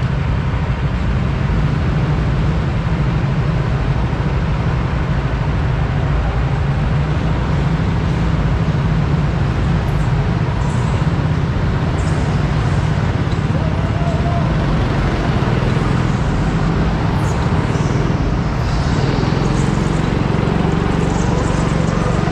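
A go-kart engine rumbles loudly and steadily close by.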